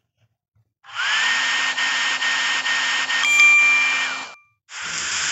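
A hair dryer blows with a whirring rush of air.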